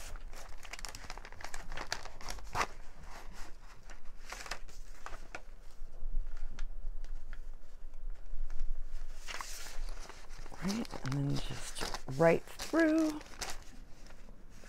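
Thread is pulled through paper with a soft scratching sound.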